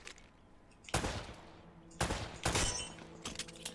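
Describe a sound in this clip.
Pistol shots crack sharply.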